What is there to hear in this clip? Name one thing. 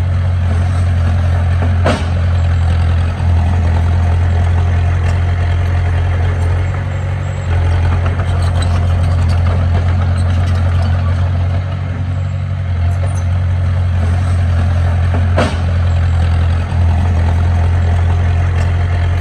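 A bulldozer's diesel engine rumbles steadily close by.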